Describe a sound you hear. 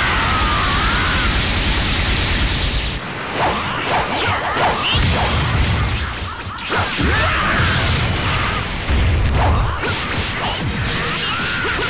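Energy blasts burst with loud roaring whooshes.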